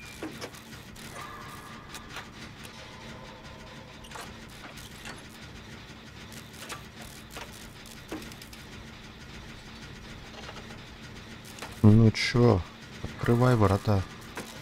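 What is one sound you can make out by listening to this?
A generator engine clanks and rattles as it is repaired.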